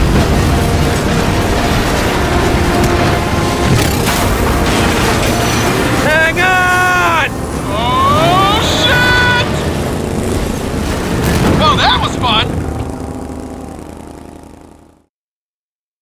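Motorcycle engines roar at speed.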